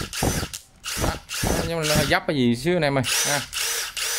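A battery clicks into a cordless power tool.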